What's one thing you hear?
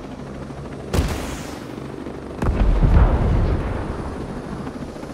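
Explosions boom in quick succession.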